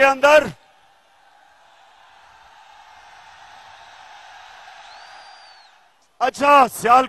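A large crowd cheers and roars outdoors.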